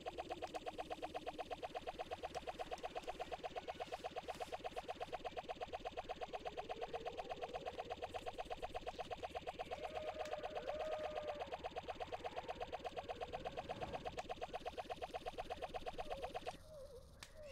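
A rapid rhythmic game music pulse plays steadily.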